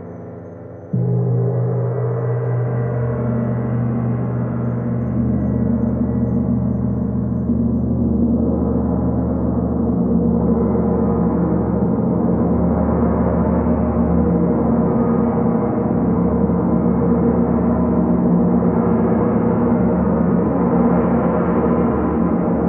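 A gong is struck and swells into a deep, rolling roar that builds louder and louder.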